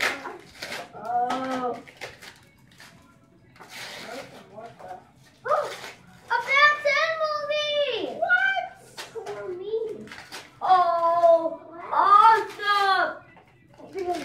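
Young children talk and squeal excitedly nearby.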